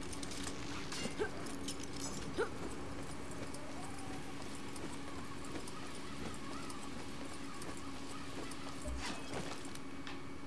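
Metal clanks and rattles.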